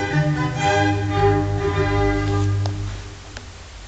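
A vinyl record plays music through a speaker.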